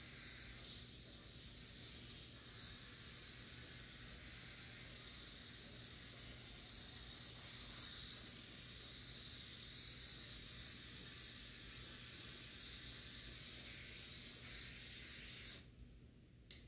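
An aerosol can sprays with a steady hiss.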